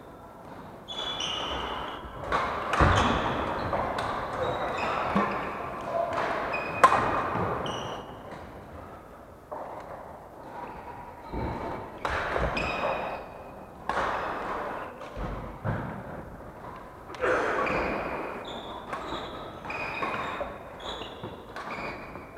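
Shoes squeak sharply on a wooden floor in a large echoing hall.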